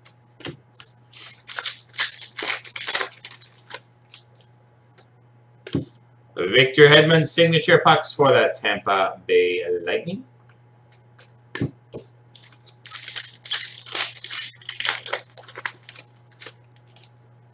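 A foil wrapper crinkles and tears as it is opened by hand.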